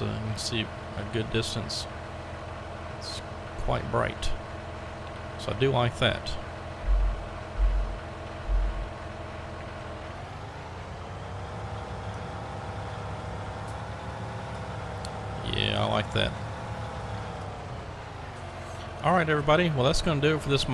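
A heavy diesel engine hums steadily, rising in pitch as the machine drives off and dropping back as it slows.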